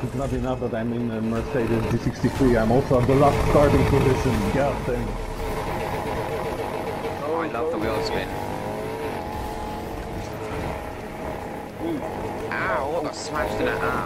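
Car engines rev loudly and roar as the cars race off.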